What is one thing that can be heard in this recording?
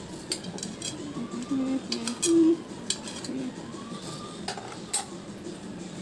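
A knife taps and scrapes against a metal plate.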